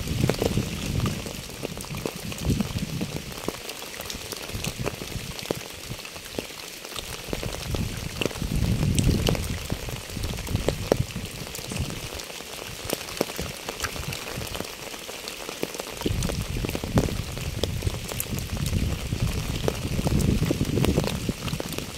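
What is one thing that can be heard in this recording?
Rain patters steadily on wet pavement and puddles outdoors.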